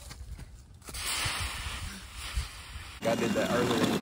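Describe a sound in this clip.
Dry leaves rustle and crunch as a child jumps into them.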